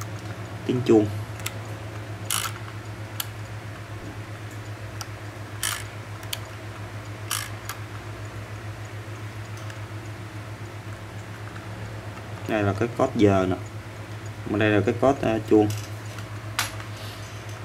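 Small metal parts of a clock mechanism click faintly now and then.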